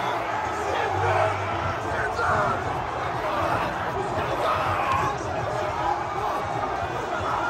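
A young man shouts with excitement close by.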